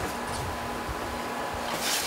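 A damp sponge rubs over wet clay.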